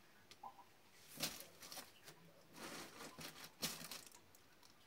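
Cloth rustles as clothes are placed into a cardboard box.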